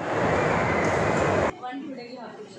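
An escalator hums and rattles steadily.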